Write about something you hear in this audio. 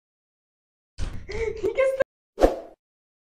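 A teenage girl speaks calmly, close by.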